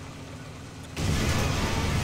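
A loud explosion bursts suddenly.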